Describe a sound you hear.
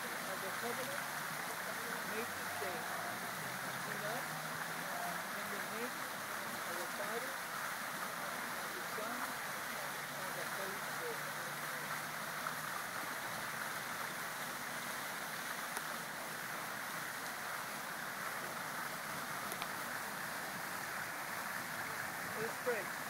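A fountain splashes steadily nearby, outdoors.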